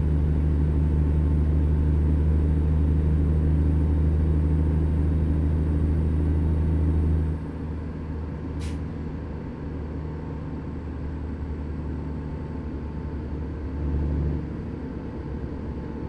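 Tyres hum on a highway.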